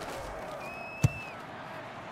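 Football players collide with a heavy thud.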